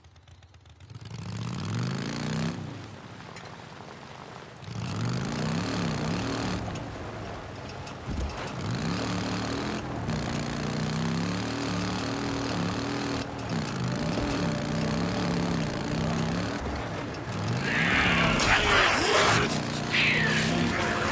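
A motorcycle engine revs and rumbles as the bike rides over rough ground.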